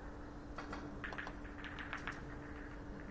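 Billiard balls click against each other on the table.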